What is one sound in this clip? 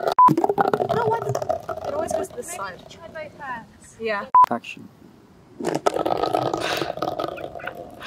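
A metal can rolls and rattles across paving stones.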